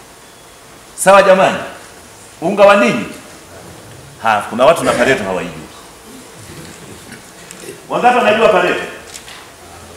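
A middle-aged man speaks loudly in short bursts in a room with a slight echo.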